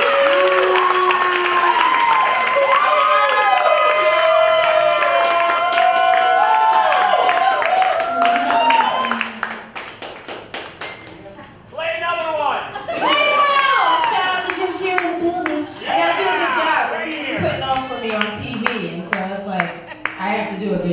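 Several women sing backing harmonies.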